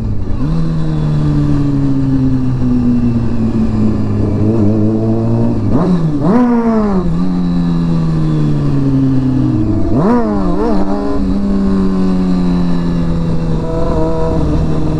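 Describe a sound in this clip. A motorcycle engine hums steadily up close, rising sharply in pitch as it revs through gear changes.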